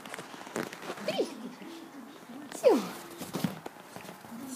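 A small dog whines and yelps in short high cries.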